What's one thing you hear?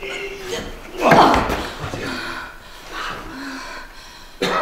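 A woman grunts with effort, close by.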